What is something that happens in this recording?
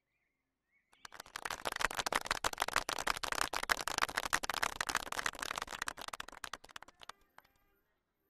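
A group of people applaud with clapping.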